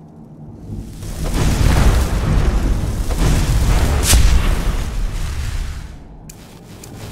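A fireball bursts with a loud, rumbling roar.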